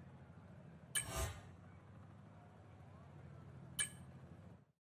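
A game menu clicks as an option is chosen.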